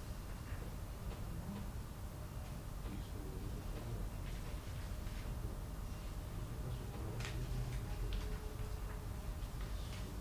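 Papers rustle softly.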